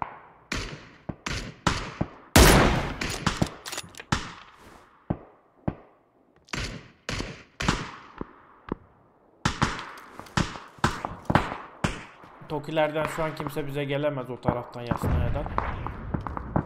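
Rifle shots ring out one after another, each with a rolling echo.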